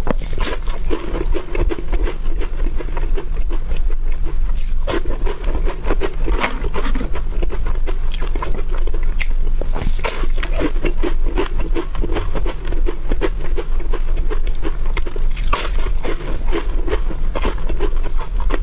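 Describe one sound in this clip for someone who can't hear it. A young woman crunches crisp wafer bars close to a microphone.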